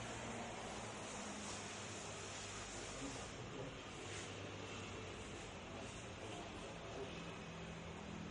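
Hands slap against arms in quick blows.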